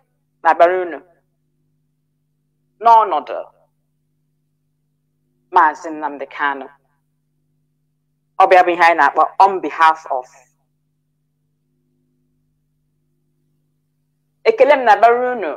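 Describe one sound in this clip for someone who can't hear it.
A woman speaks into a microphone in short phrases with long pauses.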